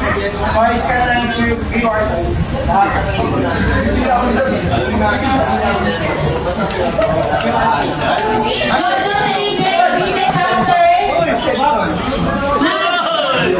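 A young woman speaks through a microphone over a loudspeaker.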